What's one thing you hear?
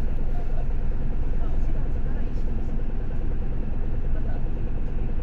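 A vehicle's engine rumbles low and steady from inside while idling in traffic.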